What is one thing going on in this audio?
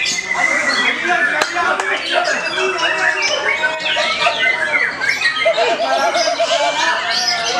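A songbird chirps and trills rapidly nearby.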